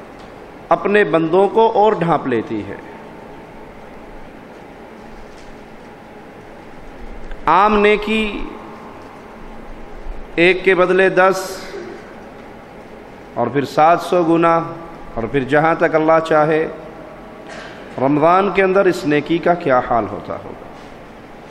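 A man speaks slowly and forcefully into a microphone, with long pauses, through loudspeakers.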